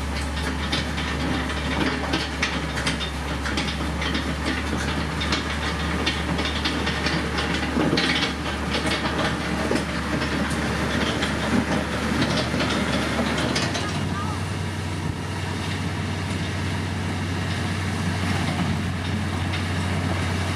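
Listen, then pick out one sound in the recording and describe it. A heavy diesel engine rumbles steadily close by.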